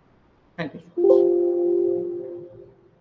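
A computer alert chimes once.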